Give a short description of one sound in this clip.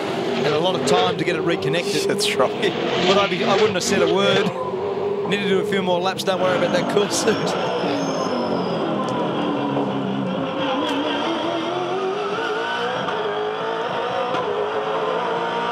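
A racing car engine roars loudly at high revs, rising and falling in pitch.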